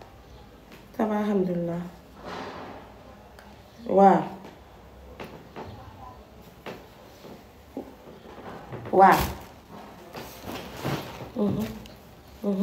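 A young woman speaks in short bursts into a phone, close by.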